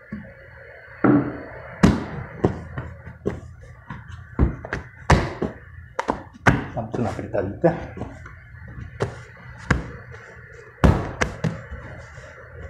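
Dough thumps and slaps onto a wooden table.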